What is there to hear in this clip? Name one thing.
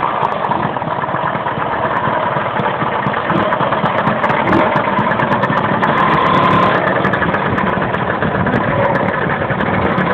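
A scooter engine idles with a rattling putter close by.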